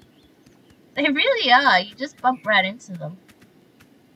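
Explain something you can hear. A young woman talks with animation into a nearby microphone.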